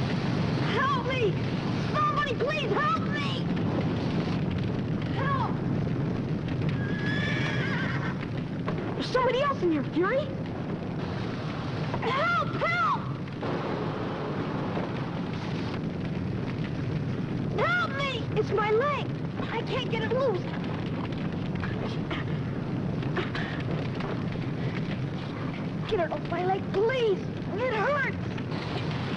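Young boys shout urgently to each other.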